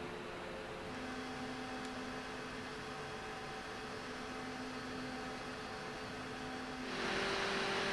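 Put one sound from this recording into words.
A computer cooler's fans whir steadily with a soft hum.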